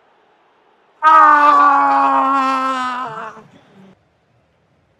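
A young man shouts with excitement close to a microphone.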